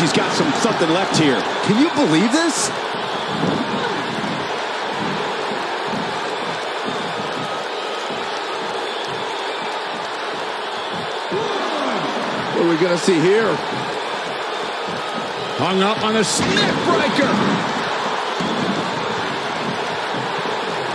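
A large crowd cheers and roars steadily in an arena.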